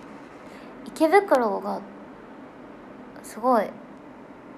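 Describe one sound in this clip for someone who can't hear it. A young woman speaks softly and briefly, close to a microphone.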